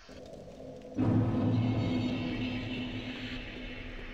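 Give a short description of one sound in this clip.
A fire crackles and roars softly.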